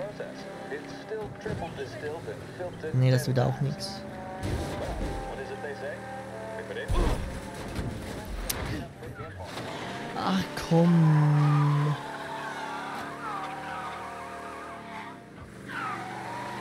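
An old car engine hums and revs.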